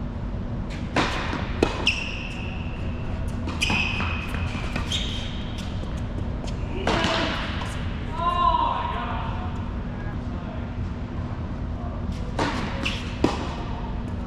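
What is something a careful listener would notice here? Tennis balls are struck with rackets, with sharp pops echoing in a large hall.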